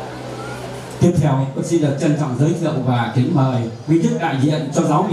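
A man speaks loudly through a loudspeaker.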